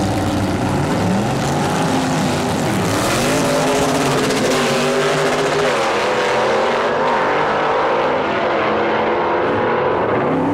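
Car engines roar and rise in pitch as the cars speed away.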